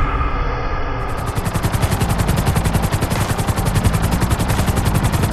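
A helicopter's rotor thumps rapidly and steadily.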